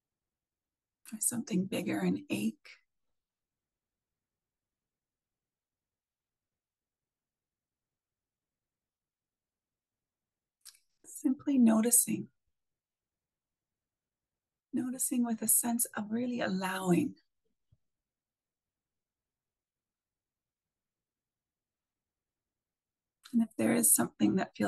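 A middle-aged woman speaks calmly and slowly, in short phrases with long pauses, through an online call.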